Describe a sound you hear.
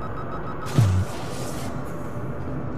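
A heavy sliding door opens with a deep thud and a hiss.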